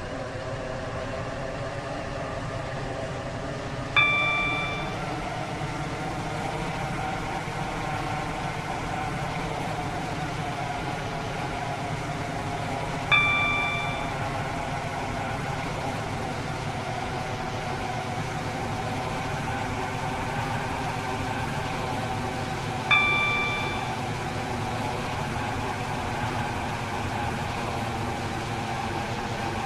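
An electric multiple-unit train hums along the rails as it accelerates.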